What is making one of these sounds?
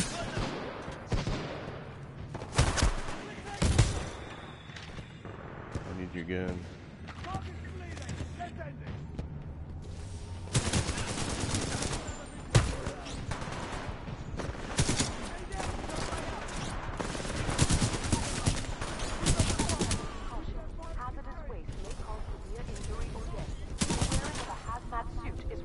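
Gunfire from a video game rattles in loud bursts.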